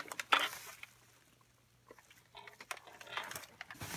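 Bubble wrap rustles and crinkles close by.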